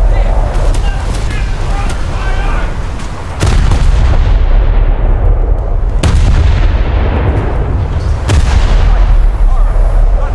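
Shells explode with distant thuds.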